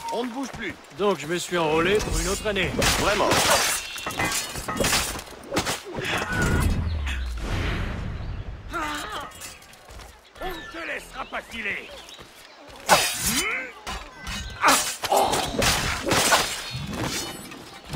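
A man grunts and cries out in pain.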